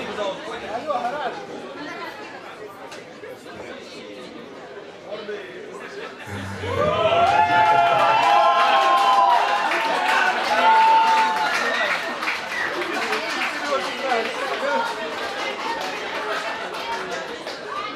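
A live rock band plays loudly in an echoing hall.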